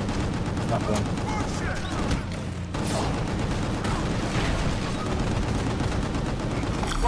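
Loud electronic music with a heavy beat plays.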